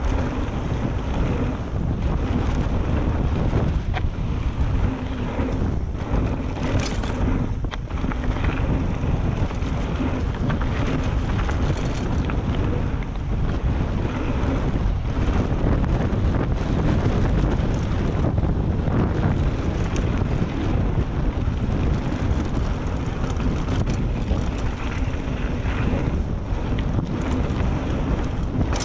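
Wind rushes loudly past a moving bike.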